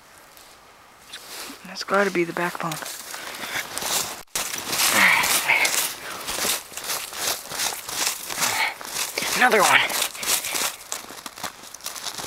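Snow and dry leaves crunch and rustle close by.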